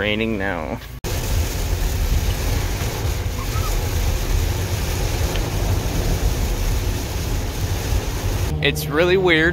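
Heavy rain pours down on a car.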